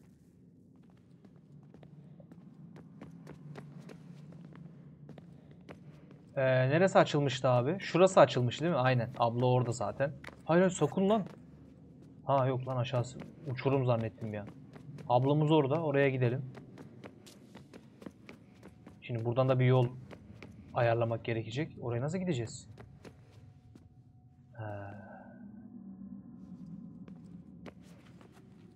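Quick footsteps patter on hard stone.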